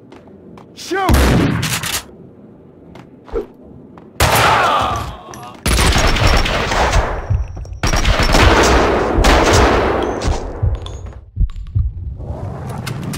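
A rifle fires loud shots that echo.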